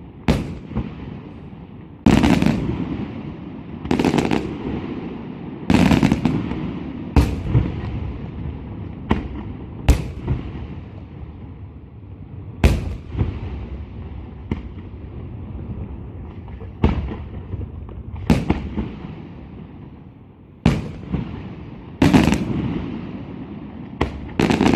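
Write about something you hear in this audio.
Fireworks crackle and fizzle after the bursts.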